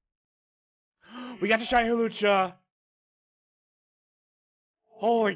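A man shouts with excitement close to a microphone.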